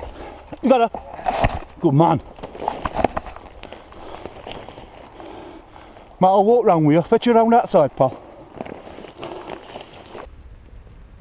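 Footsteps crunch and rustle through dry brush and undergrowth.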